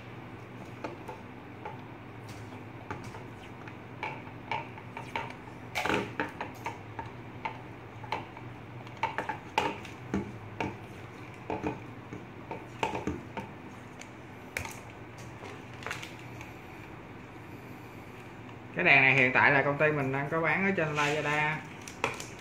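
Plastic parts click and rustle as hands handle them.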